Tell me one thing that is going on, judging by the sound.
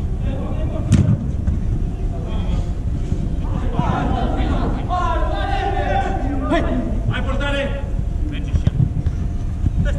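A football thuds off a boot in a large echoing hall.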